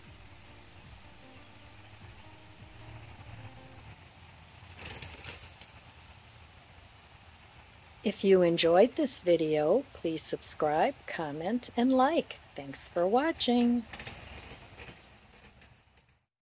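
Light rain patters steadily outdoors.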